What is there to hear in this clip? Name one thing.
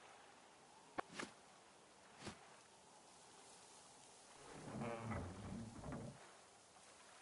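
An oar splashes in water.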